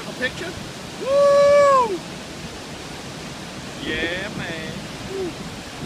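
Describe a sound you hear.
A middle-aged man whoops and shouts loudly nearby.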